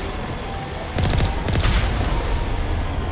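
An explosion bursts with a deep boom nearby.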